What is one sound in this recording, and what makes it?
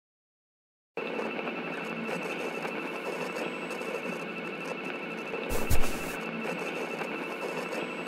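A metal detector hums steadily with a high tone.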